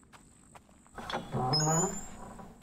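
A wooden gate creaks open loudly.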